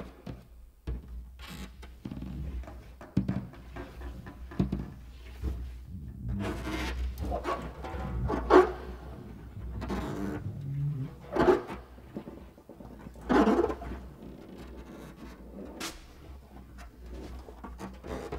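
Drumsticks tap and scrape on a snare drum.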